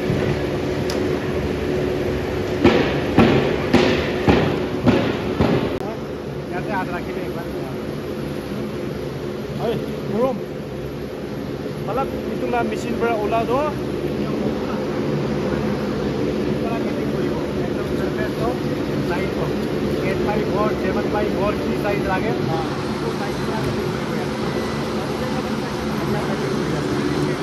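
A steady machine hum fills a large echoing hall.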